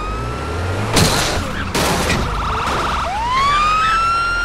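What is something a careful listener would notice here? A car crashes into another car with a metal crunch.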